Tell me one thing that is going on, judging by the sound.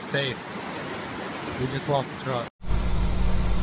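Floodwater rushes and churns.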